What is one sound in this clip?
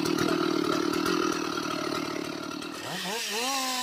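A chainsaw cuts into a tree trunk with a rough, buzzing roar.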